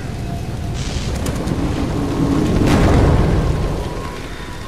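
A fire roars and rumbles close by.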